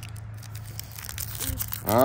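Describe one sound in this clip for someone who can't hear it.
A plastic wrapper crinkles as a hand pushes it aside.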